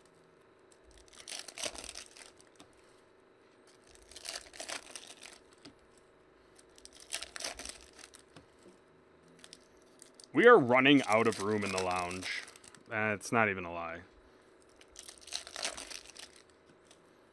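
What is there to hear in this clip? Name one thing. Foil wrappers crinkle and tear as hands rip open packs in short bursts.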